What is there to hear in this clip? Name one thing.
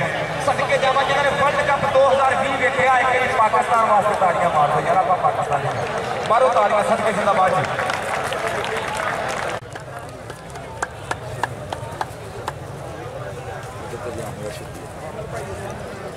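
A large outdoor crowd murmurs.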